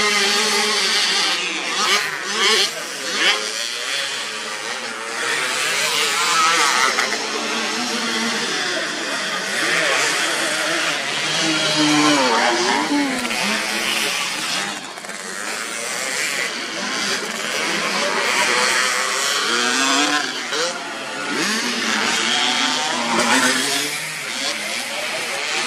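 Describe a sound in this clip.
A small dirt bike engine revs and whines up and down.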